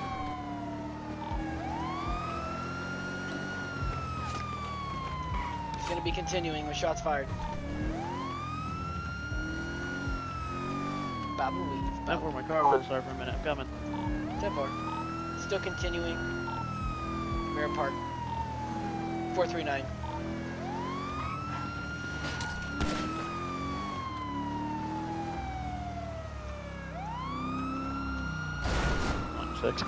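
A police siren wails in a rising and falling cycle.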